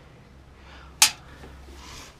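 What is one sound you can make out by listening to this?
Small metal weights clink together in a hand.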